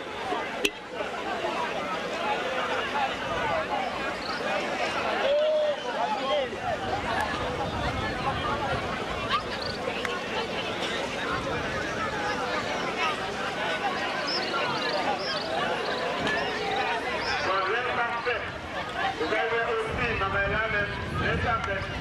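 Men talk in lively overlapping voices nearby.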